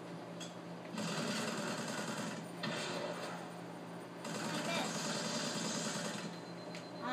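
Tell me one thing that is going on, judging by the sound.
Rapid gunfire from a video game crackles through a loudspeaker.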